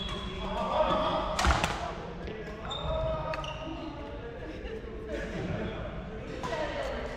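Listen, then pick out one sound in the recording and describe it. Shoes squeak on a wooden court.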